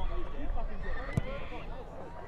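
A football is kicked hard with a dull thud.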